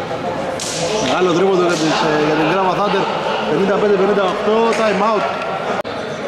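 Men call out and talk loudly across the hall.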